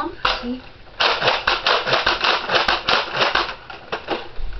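A plastic toy blaster clicks and rattles rapidly.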